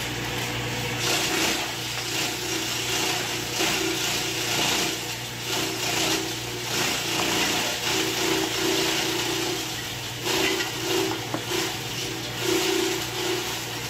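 Grass stalks rustle as they are fed into a shredder.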